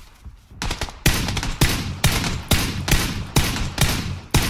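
A rifle fires a rapid series of loud shots.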